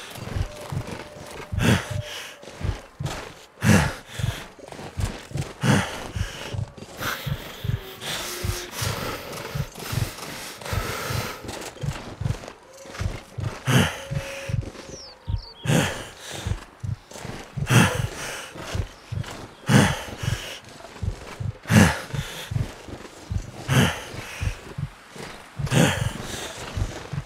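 Footsteps crunch through deep snow at a steady walking pace.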